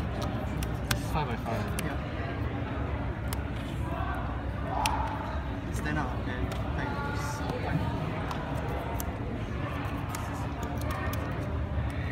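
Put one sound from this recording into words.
Cards riffle and shuffle in hands.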